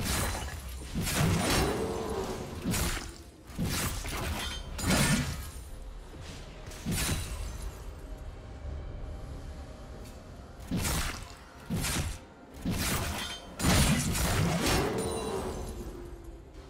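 Magic spell effects whoosh and burst during a fight.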